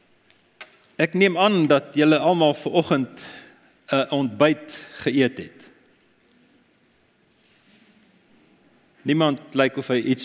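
An older man speaks calmly and clearly into a microphone, with pauses between phrases.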